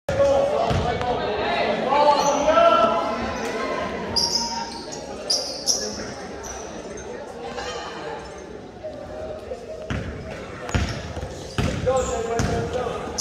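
Young players call out to each other in a large echoing gym.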